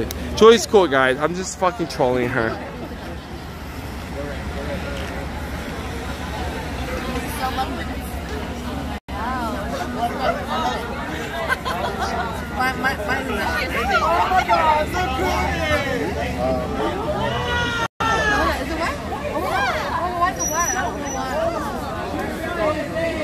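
A crowd of young men and women talks excitedly close by, outdoors.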